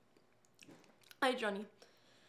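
A young woman talks on a phone with animation.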